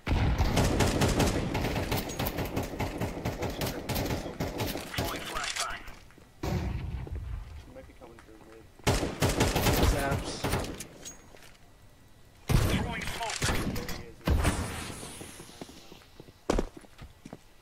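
A rifle fires in short bursts.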